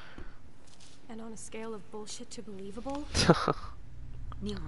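Another young woman asks a question in a dry, doubtful tone, close by.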